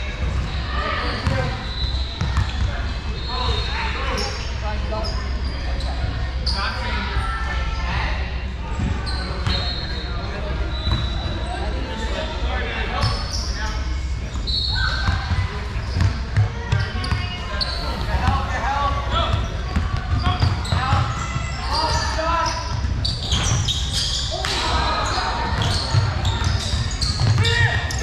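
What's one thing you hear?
Young boys shout and call out across a large echoing gym.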